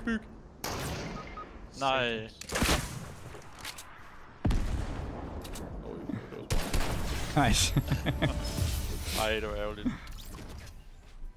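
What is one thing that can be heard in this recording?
A young man speaks excitedly into a close microphone.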